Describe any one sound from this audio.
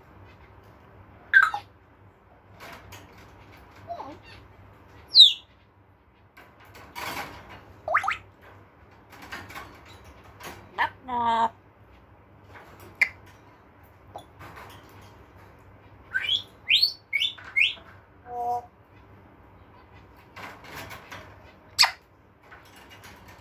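A parrot's claws scrape and clink against metal cage bars.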